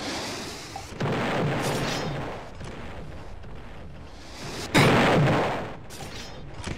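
Wooden debris crashes and scatters as a structure breaks apart.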